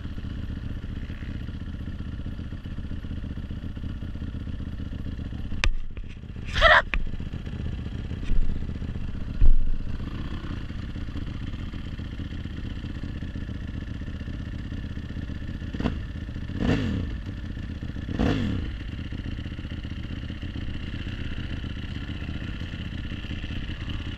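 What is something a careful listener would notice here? A motorcycle engine idles with a low, steady rumble close by.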